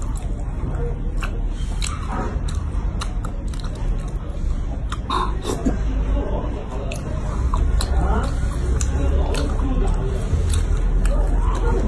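Sauce squelches as food is pulled from a tray.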